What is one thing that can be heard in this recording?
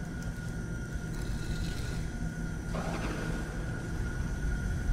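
A magical shimmering sound rings out as a pedestal activates.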